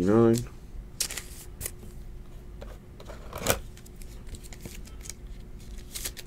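Stiff plastic sleeves rustle and click as hands handle a trading card.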